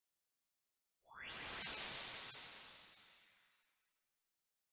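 A soft magical whoosh swells and slowly fades.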